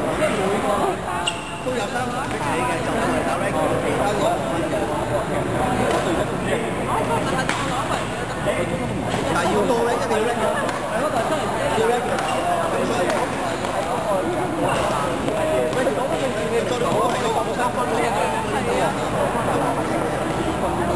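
Sneakers squeak and scuff on the court floor.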